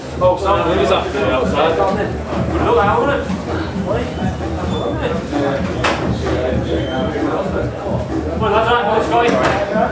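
Several young men chatter in an echoing corridor.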